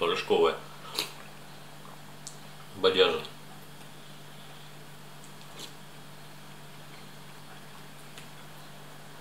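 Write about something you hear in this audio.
A spoon clinks against a bowl.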